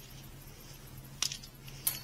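A metal tool clinks against a vehicle's underside.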